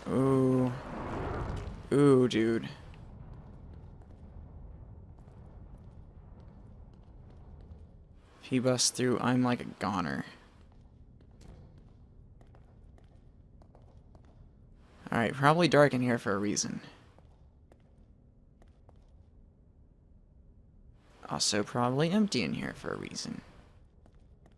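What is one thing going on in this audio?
A young man talks calmly into a close microphone, in short bursts with pauses.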